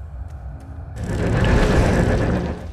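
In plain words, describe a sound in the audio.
A loud roaring burst of noise erupts in combat.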